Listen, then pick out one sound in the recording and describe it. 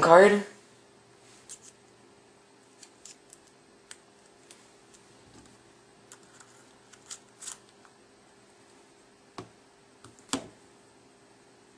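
Fingers handle a phone, with small clicks and taps.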